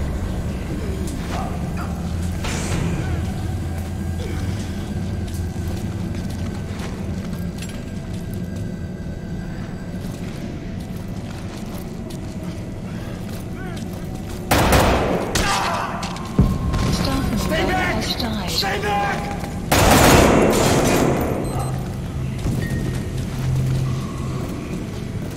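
Footsteps pad along a hard floor.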